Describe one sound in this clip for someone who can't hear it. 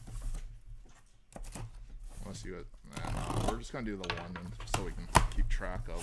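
A blade slices through packing tape on a box.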